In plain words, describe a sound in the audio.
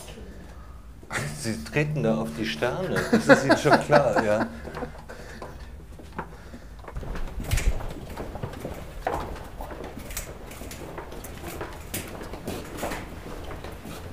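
Footsteps shuffle along a narrow passage.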